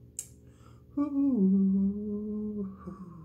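A young man sings a held, wavering note.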